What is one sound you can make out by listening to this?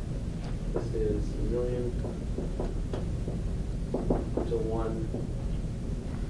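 A man speaks calmly at a distance in a room.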